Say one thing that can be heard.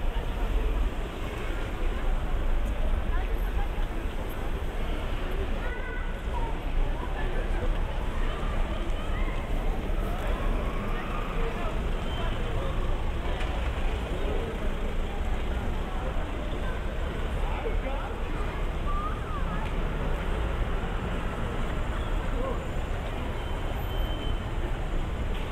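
Voices of passers-by murmur nearby.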